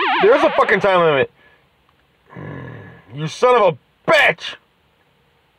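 Short electronic game blips and jingles sound.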